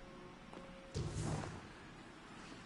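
A magical energy burst whooshes nearby.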